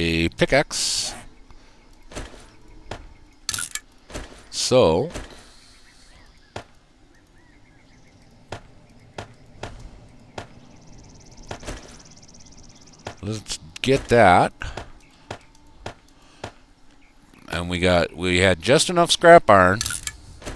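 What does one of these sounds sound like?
Short soft clicks sound as game menu items are picked and placed.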